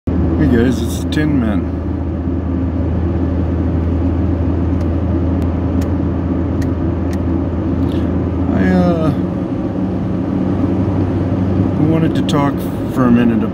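A vehicle engine hums low and steady while driving.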